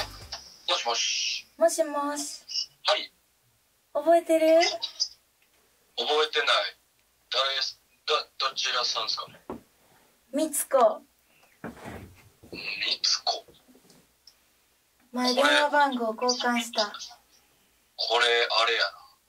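A man answers through a phone's speaker.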